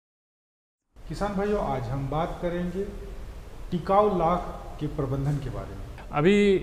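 A man speaks calmly and steadily, close to a microphone.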